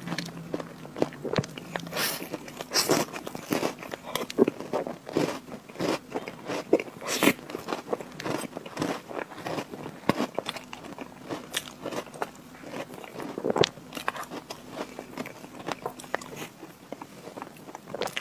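A metal spoon scrapes and clinks against a plate.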